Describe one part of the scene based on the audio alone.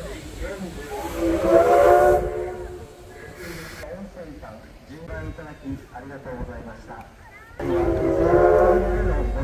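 A steam locomotive's whistle blows loudly in long, steady blasts.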